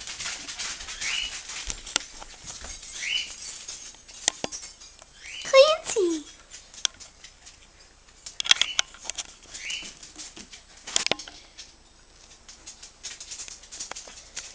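A dog's claws click on a tiled floor.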